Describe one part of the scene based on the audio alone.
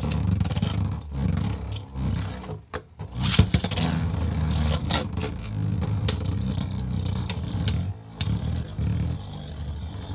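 Spinning tops clack sharply against each other and the plastic wall.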